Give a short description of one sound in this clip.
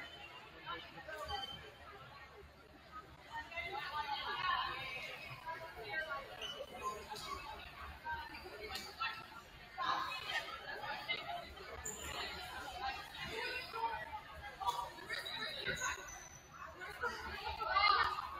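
Sneakers squeak on a wooden court floor.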